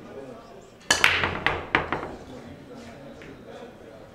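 Billiard balls clack against each other and the cushions as they scatter.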